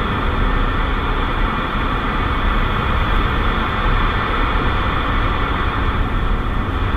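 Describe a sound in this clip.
A radio hisses with steady static.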